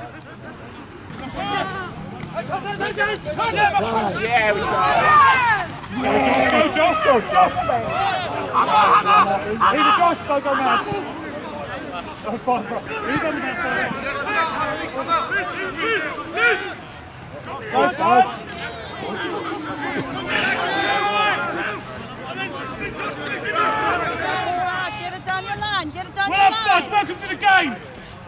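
Young men shout and call to one another outdoors across an open field.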